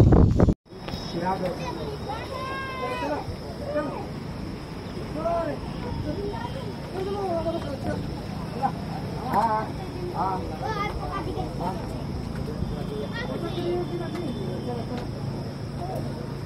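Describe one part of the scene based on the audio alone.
Several men talk nearby in a crowd.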